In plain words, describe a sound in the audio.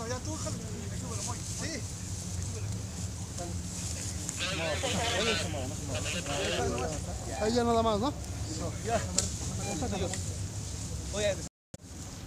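Several men talk and call out to each other outdoors.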